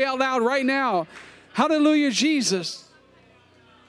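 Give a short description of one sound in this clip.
A man sings loudly through loudspeakers in a large echoing hall.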